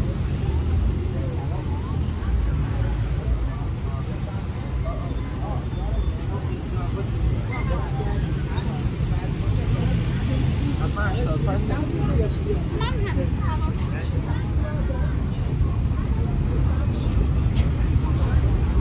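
Men and women passing by murmur and chatter nearby.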